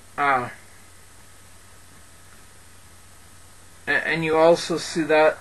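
A man speaks close to a microphone, with pauses.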